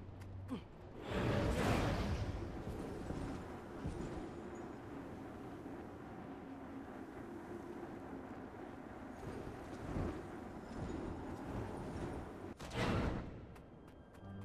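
Wind rushes past loudly in bursts during a glide.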